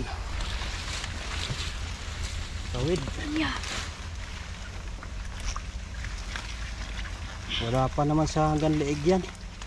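Leaves rustle.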